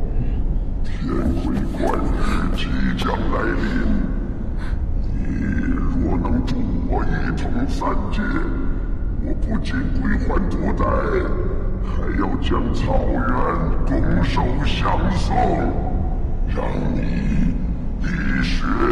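A man speaks in a low, stern voice.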